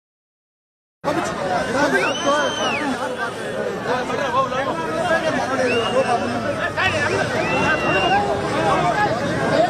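A large crowd of men shouts and cheers loudly outdoors.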